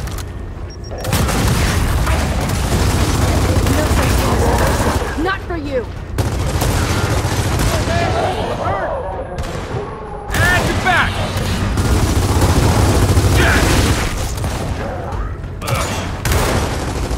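Automatic rifles fire in rapid, loud bursts.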